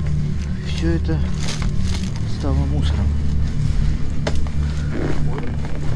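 Books and boxes thump as they shift.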